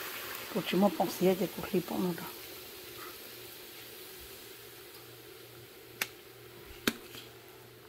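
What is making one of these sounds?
A utensil knocks against a pan.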